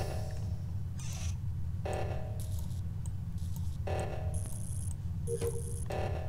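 Short electronic tones sound as wires snap into place.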